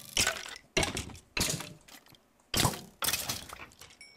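A bony creature rattles.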